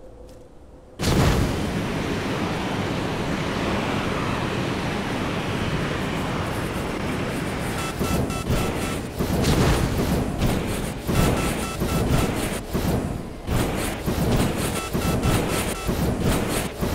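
A jetpack roars loudly and steadily.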